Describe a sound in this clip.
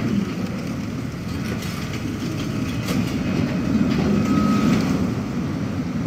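A tram rolls in along rails with a low, growing rumble.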